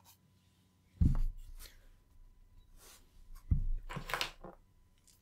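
A metal box is set down on a hard surface with a dull thud.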